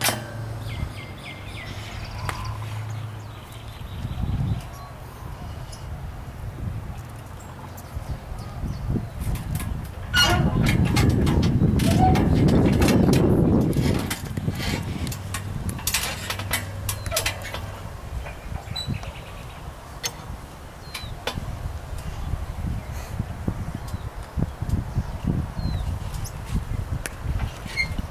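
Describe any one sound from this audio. Metal rings and chains clink and rattle on a playground frame.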